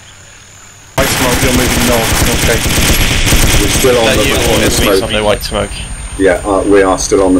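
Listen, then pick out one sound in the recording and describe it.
A machine gun fires rapid bursts close by.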